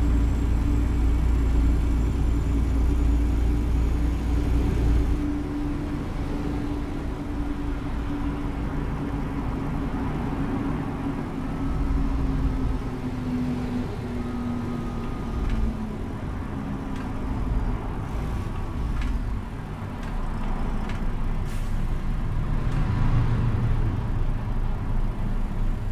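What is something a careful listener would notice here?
Traffic rushes past on a motorway.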